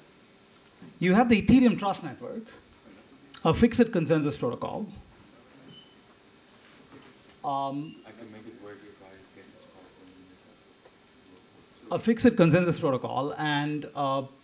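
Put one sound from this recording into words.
A man speaks into a microphone through loudspeakers in a large room, pausing often.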